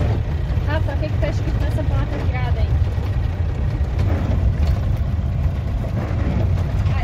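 Tyres crunch over a gravel road.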